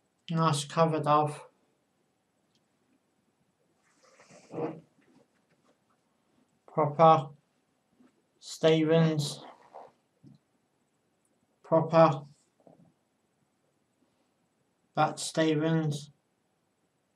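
A young man talks in short bursts close to a microphone, with pauses between.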